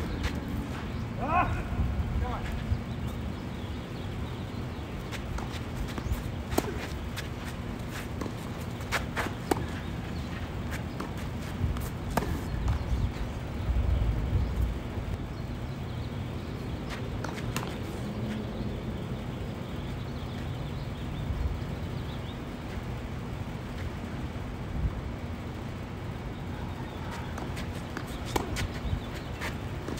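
Tennis balls are struck with rackets in a rally, with sharp pops.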